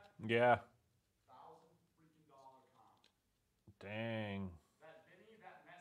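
Trading card packs crinkle as they are torn open.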